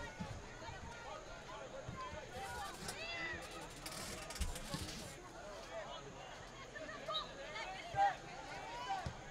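Players shout to each other across an open field, outdoors.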